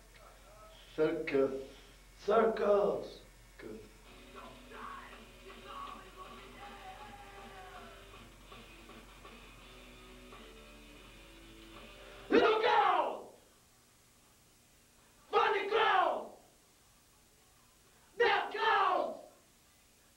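Several men shout together in short, loud bursts, close to a microphone.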